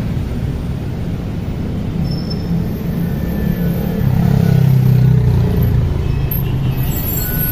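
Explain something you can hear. A bus engine rumbles loudly close by as it pulls up.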